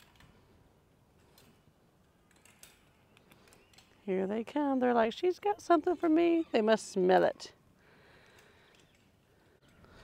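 A wire fence rattles softly as a clip is worked loose.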